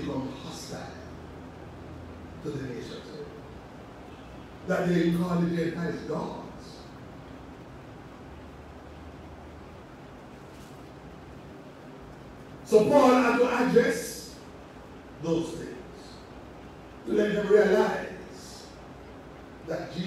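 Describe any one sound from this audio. A middle-aged man preaches with animation into a microphone, in bursts with pauses, in a large echoing hall.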